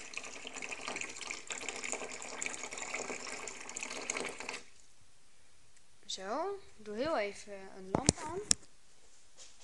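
A metal sink strainer clinks and scrapes against a steel sink.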